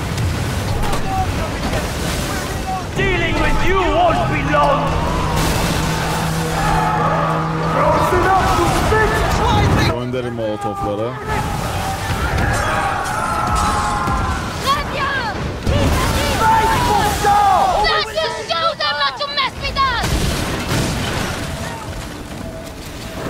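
Stormy sea waves roar in a game.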